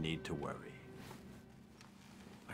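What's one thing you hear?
An elderly man speaks quietly and calmly nearby.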